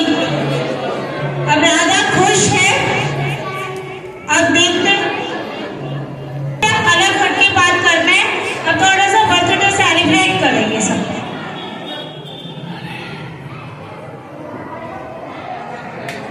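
A crowd of children chatters softly in a large room.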